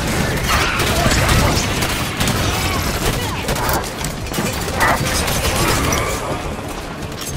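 Gunfire and explosions crack and boom in quick bursts.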